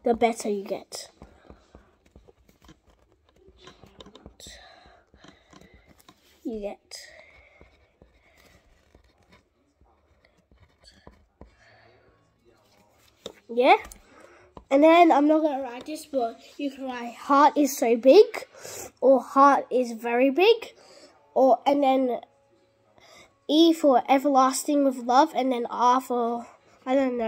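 A young boy talks close to the microphone with animation.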